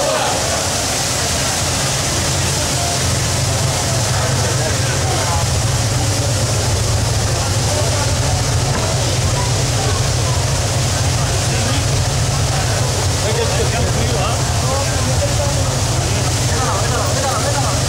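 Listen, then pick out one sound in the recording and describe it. Men talk in the distance amid steady background noise.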